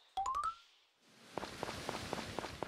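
A waterfall rushes nearby.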